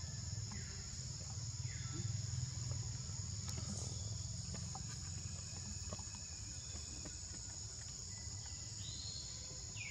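A baby monkey squeaks softly up close.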